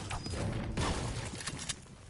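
A pickaxe strikes hard surfaces with sharp thuds.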